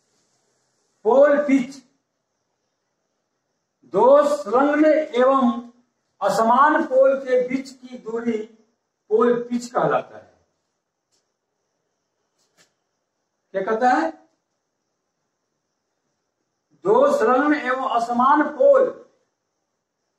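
A middle-aged man speaks calmly and explains, close by, in short bursts with pauses.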